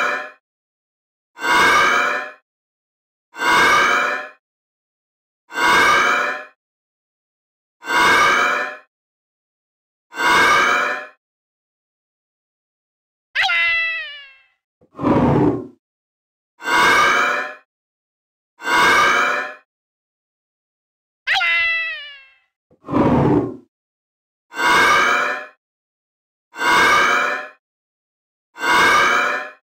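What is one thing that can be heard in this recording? A game ball bounces again and again with a springy sound effect.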